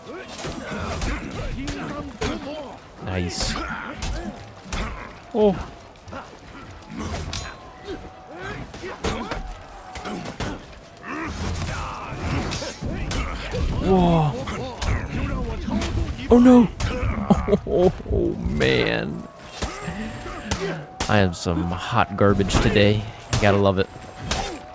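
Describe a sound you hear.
Metal weapons clash and strike repeatedly.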